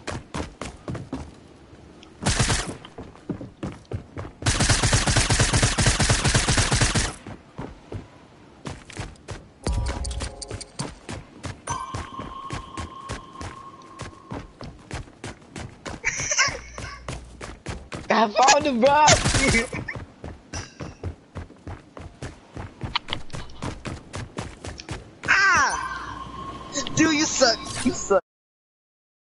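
Quick footsteps patter on the ground.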